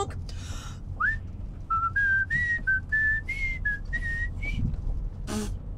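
A man whistles a rising tune.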